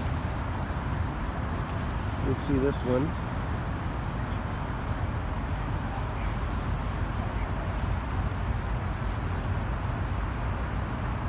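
Wind rumbles across the open water.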